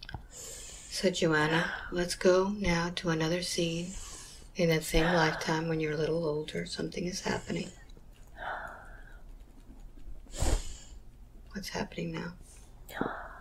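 An elderly woman speaks close by in a strained, pained voice.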